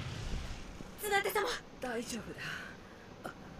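A woman speaks softly and weakly.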